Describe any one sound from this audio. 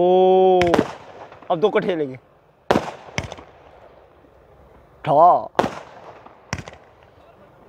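Fireworks burst with sharp bangs and crackles.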